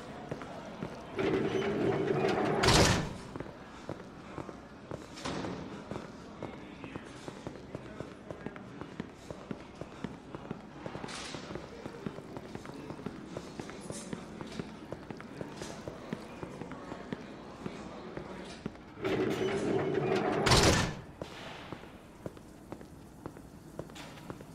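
Footsteps tap steadily on a hard floor and metal stairs.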